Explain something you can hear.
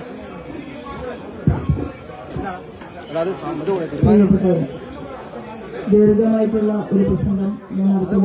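A middle-aged woman speaks into a microphone through a loudspeaker.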